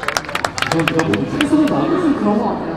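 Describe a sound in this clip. A crowd of spectators claps rapidly.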